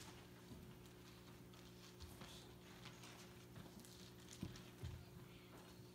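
Pages of a book rustle as a man turns them.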